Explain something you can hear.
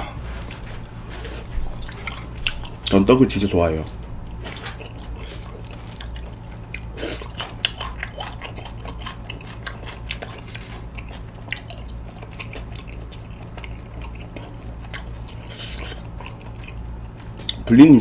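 A young man chews food close to a microphone.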